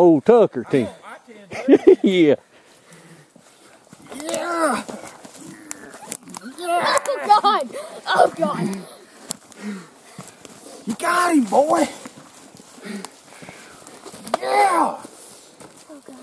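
A man talks loudly and with animation close by.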